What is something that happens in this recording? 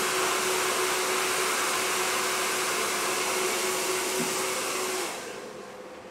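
A hair dryer blows loudly, then switches off.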